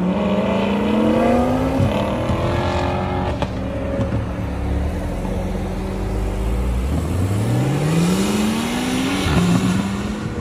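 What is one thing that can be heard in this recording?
A sports car engine revs loudly and roars as the car accelerates away.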